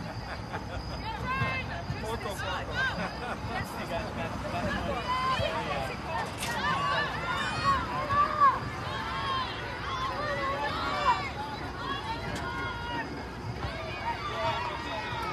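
Spectators nearby talk and call out outdoors.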